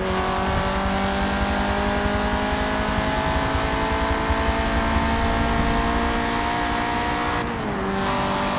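A racing car engine roars steadily at high revs, rising slowly in pitch, then drops briefly as the gear shifts up.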